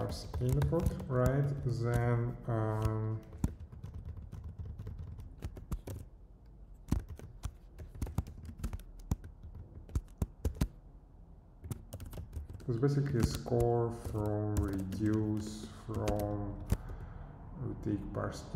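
Keys click on a keyboard in quick bursts.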